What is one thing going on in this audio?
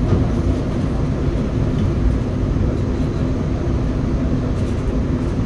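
Wheels clatter over the rail joints.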